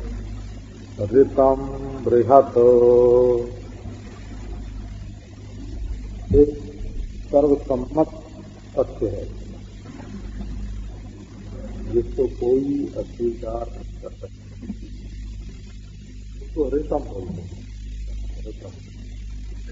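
An elderly man speaks calmly and slowly, with long pauses, through a microphone.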